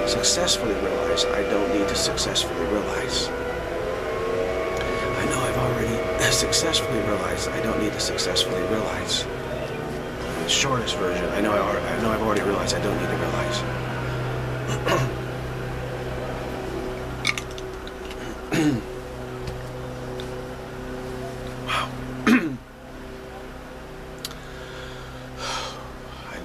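A middle-aged man talks calmly, close to a microphone.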